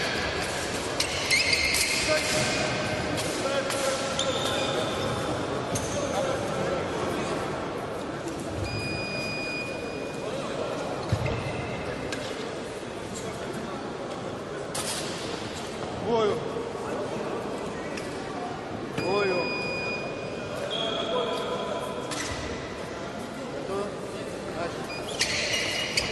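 Blades clash and scrape as two fencers fight.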